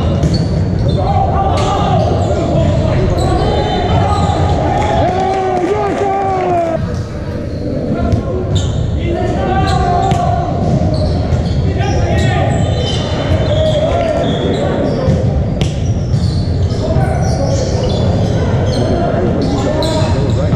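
Young players shout and call out across a large echoing gym.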